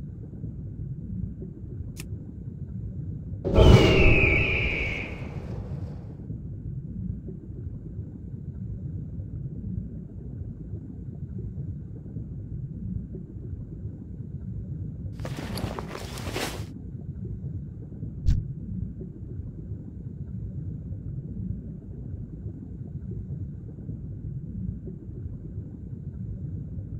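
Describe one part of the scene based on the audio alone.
Water murmurs with a steady low underwater rumble.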